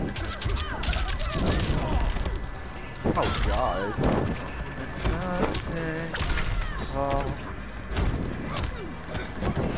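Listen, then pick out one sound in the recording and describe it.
Punches and kicks land with heavy thuds in a fight.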